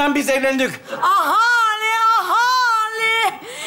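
A woman wails theatrically in a high voice.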